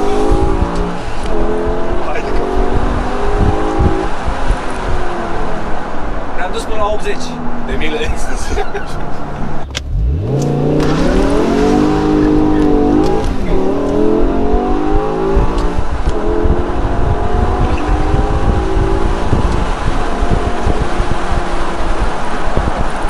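A car engine roars and revs up through the gears, close by.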